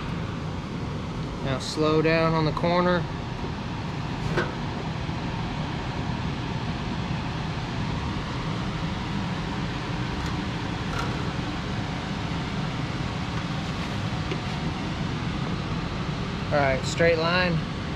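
A rolling machine squeaks and rumbles against a sheet of metal.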